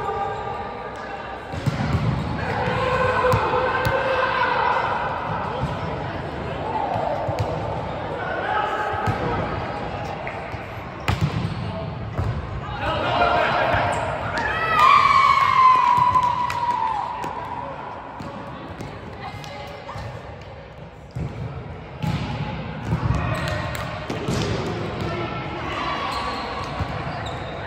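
Players call out and talk across a large echoing hall.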